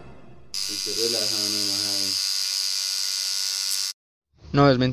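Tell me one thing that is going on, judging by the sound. A tattoo machine buzzes steadily close by.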